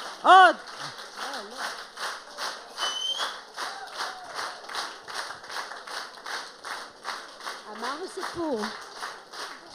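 An elderly woman speaks through a microphone in short, lively bursts.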